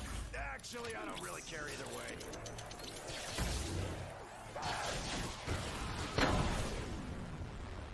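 An electric weapon crackles and zaps.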